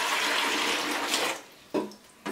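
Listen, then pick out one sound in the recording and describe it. Water pours into a plastic tank.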